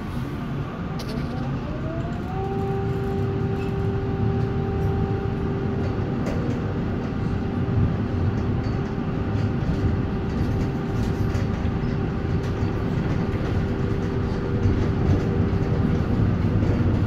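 An electric tram motor whines, rising in pitch as it speeds up and then holding steady.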